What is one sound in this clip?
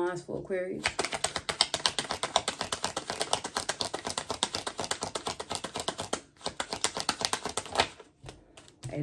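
Playing cards riffle and flick rapidly as they are shuffled.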